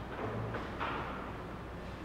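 An elderly man speaks calmly into a microphone in a large, echoing hall.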